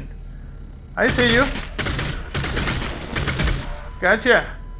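Gunfire rattles in rapid bursts nearby.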